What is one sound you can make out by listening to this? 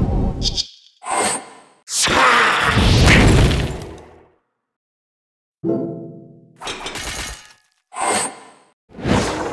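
Game spell effects whoosh and crash in short bursts.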